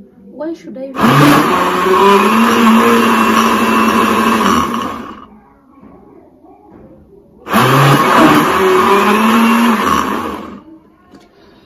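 A blender whirs loudly in two bursts.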